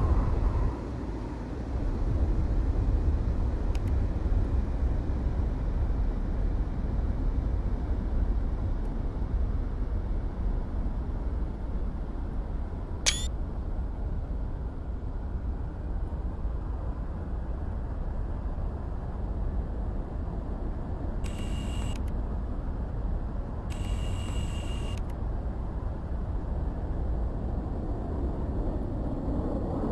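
A jet engine roars steadily with a deep rumble.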